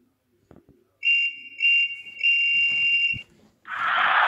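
A referee's whistle blows three long blasts.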